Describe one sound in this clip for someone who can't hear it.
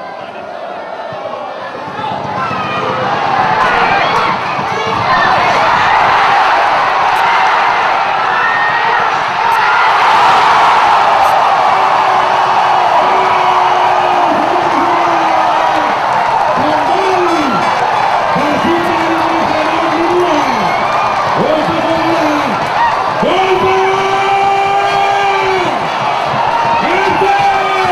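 A large crowd sings and chants in unison.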